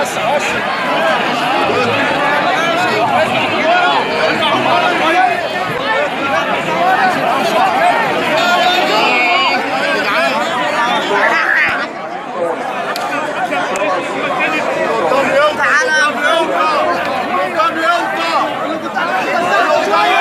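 A large crowd of men and women shouts and wails loudly and close by, outdoors.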